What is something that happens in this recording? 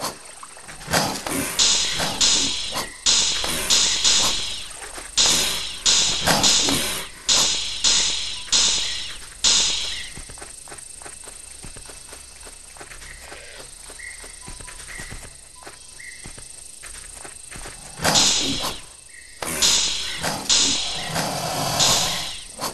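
A crocodile growls and snaps its jaws.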